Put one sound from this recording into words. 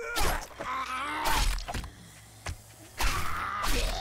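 A knife slashes into flesh.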